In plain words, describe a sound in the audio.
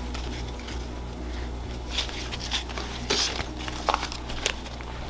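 Dry corn husks rustle as hands fold them.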